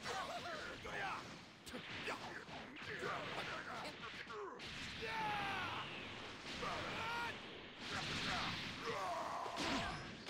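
Punches land with rapid heavy thuds.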